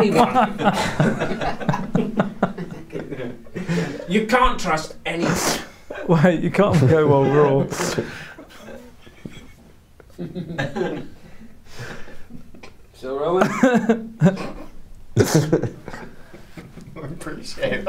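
Several men laugh close by.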